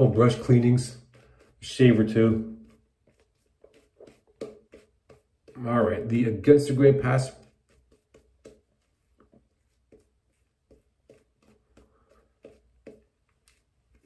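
A shaving brush swishes softly against lathered skin.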